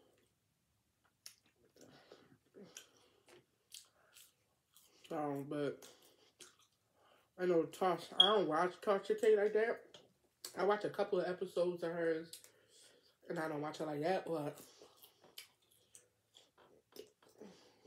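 A young woman chews food noisily.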